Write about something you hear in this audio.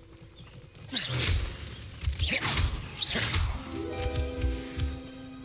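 A magic spell crackles and bursts.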